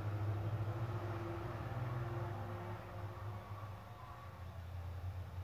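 An engine idles with a low, steady hum.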